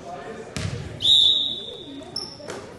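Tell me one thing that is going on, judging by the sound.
A referee blows a sharp whistle.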